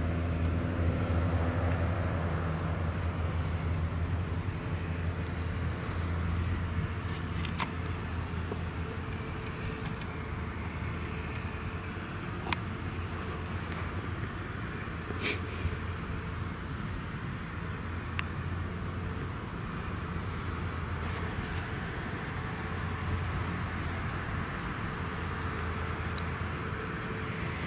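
A harvester engine hums steadily in the distance.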